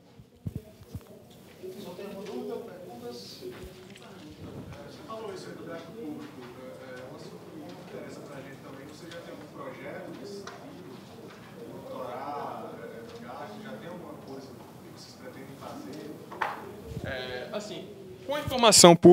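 A young man talks more quietly and farther off, away from the microphone.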